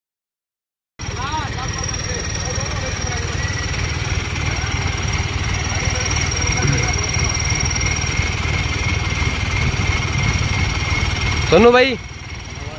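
Tractor engines rumble and strain loudly.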